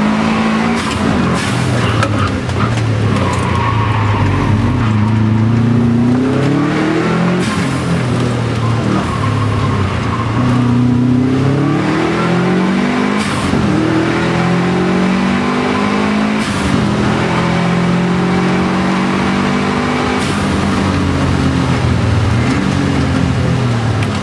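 A car's gearbox shifts up and down.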